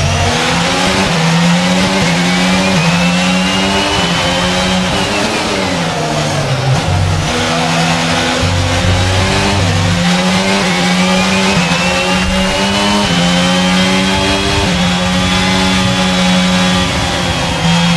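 A racing car engine screams, rising in pitch through the gears, dropping for a corner, then rising again.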